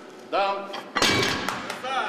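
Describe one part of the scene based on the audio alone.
A heavy barbell crashes down onto the floor.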